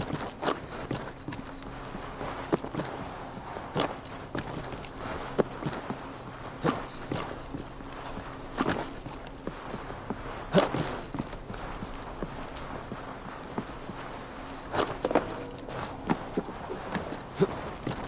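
Footsteps thud and scrape as a climber clambers up tree trunks and across wooden planks.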